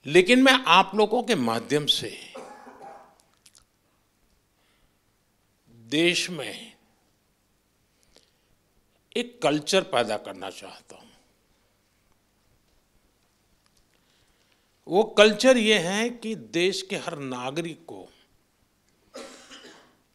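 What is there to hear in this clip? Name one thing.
An elderly man speaks calmly into a microphone in a large room, pausing between phrases.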